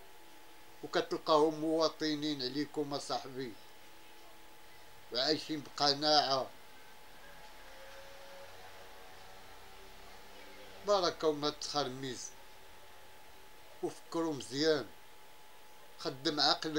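A middle-aged man speaks calmly and closely into a microphone, pausing between phrases.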